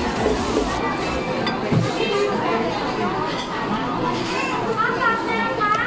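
Many people chatter at once in a busy, lively room.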